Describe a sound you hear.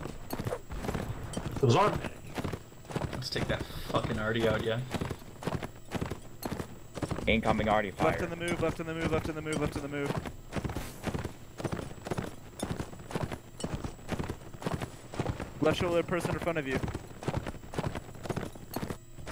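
A horse gallops with quick, rhythmic hoofbeats.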